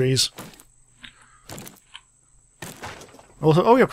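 An axe chops into a tree trunk with dull thuds.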